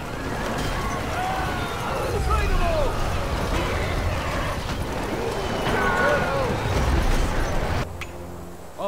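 A battle rages with a dense roar of clashing weapons.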